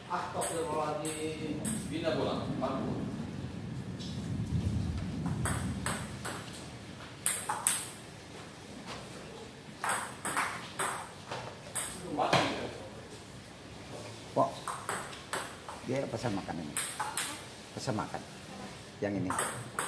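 A table tennis ball clicks back and forth on paddles and the table in a large echoing hall.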